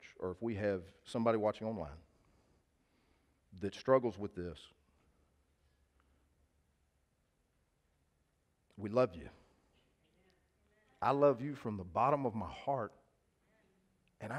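A man speaks with animation through a headset microphone, pausing between phrases.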